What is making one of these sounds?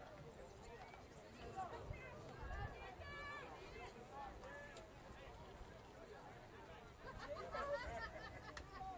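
A crowd of spectators chatters and cheers outdoors at a distance.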